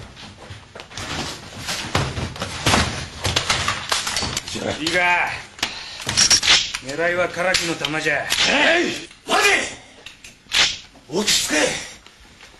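Several men talk over one another.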